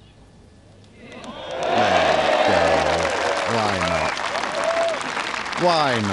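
A large crowd erupts in loud cheers outdoors.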